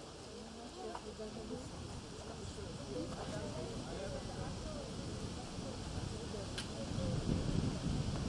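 A woman talks quietly with a man nearby.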